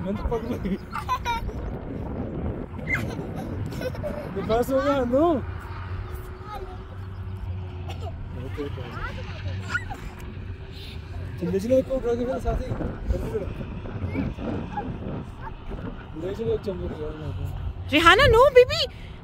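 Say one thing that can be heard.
A young girl squeals and chatters excitedly close by.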